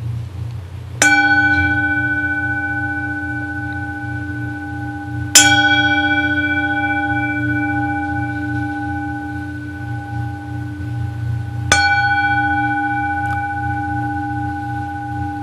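A singing bowl is struck and rings with a long, slowly fading tone.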